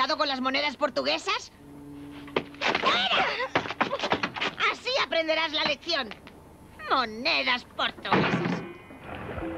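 An elderly woman speaks with emotion, close by.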